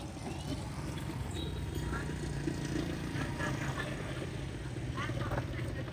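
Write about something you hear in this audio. A motorbike engine hums as it rides past.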